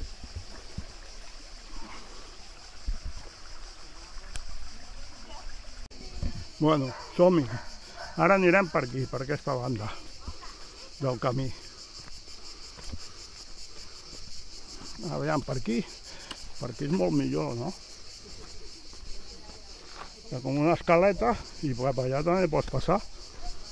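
Footsteps crunch on a dry dirt trail.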